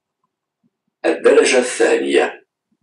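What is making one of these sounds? A man speaks close to the microphone.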